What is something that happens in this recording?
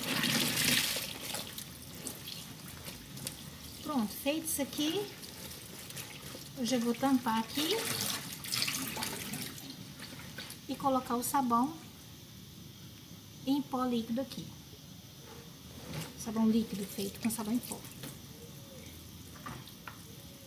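Water runs from a tap into a tub.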